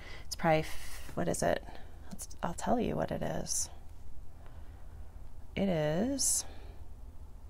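A middle-aged woman speaks calmly and close by, in short bursts.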